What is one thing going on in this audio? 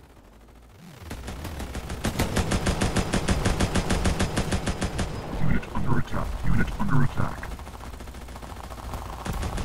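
Rapid laser gunfire rattles in quick bursts.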